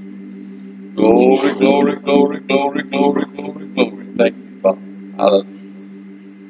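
A woman speaks loudly through a loudspeaker for a few seconds.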